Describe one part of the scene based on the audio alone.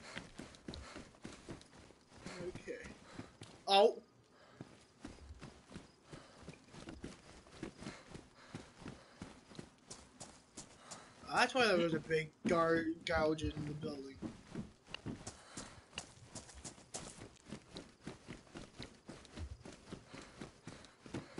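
Footsteps run quickly across hard ground.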